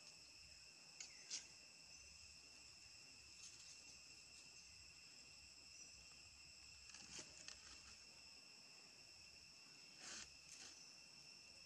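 Young monkeys squeak briefly while playing.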